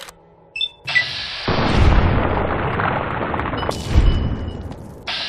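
A gun fires heavy booming shots.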